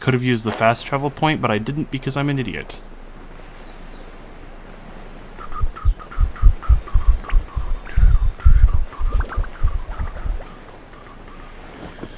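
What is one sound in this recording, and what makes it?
Wind rushes softly past a glider in flight.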